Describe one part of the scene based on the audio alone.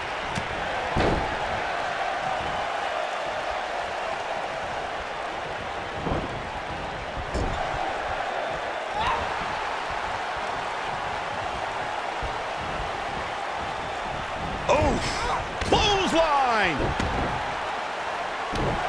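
A body slams onto a wrestling ring's canvas with a thud.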